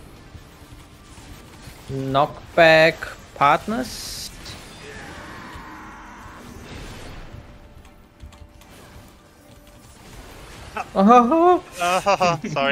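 Magical spell effects whoosh and chime.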